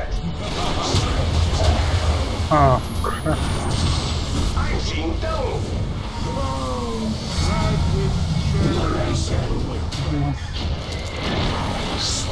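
Magic spells and weapon blows crash in a fantasy battle.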